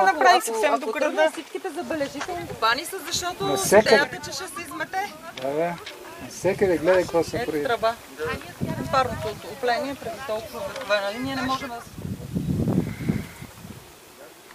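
A young woman talks with animation outdoors.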